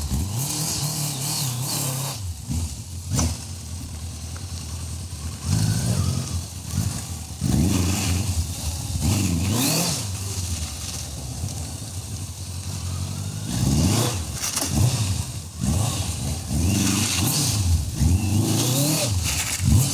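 A motorcycle engine idles and revs up and down close by.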